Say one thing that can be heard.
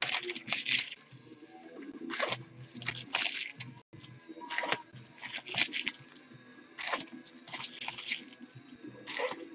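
Foil wrappers crinkle and rustle as hands tear them open.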